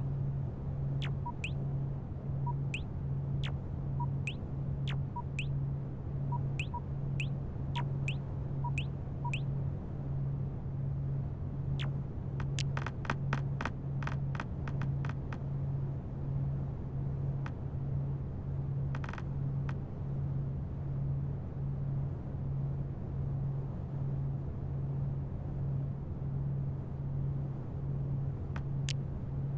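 Game menu clicks and beeps sound as destinations are selected.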